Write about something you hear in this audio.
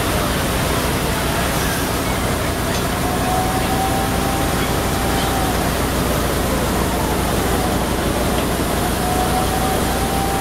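A large fire roars and crackles steadily.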